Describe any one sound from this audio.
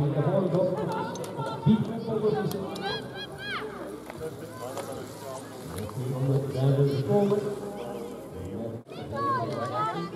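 A crowd of spectators chatters and cheers outdoors.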